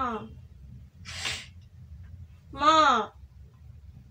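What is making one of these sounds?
A young woman cries out in distress close by.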